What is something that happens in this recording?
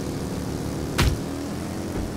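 A fist strikes a rider with a thud.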